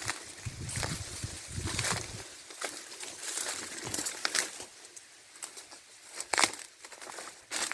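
Dry grass and leaves rustle and brush close by.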